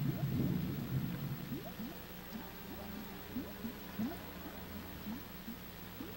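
A handheld radio scanner gives short rising chirps as it is tuned.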